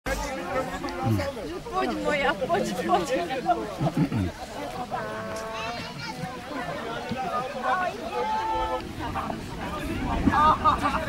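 A crowd of men and women shouts and cheers loudly outdoors.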